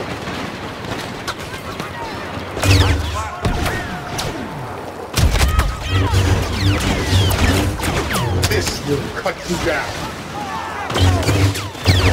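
Blaster bolts fire and hit.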